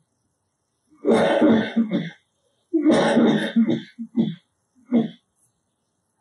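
A man speaks calmly and slowly into a nearby microphone.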